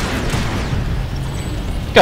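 A distant explosion booms.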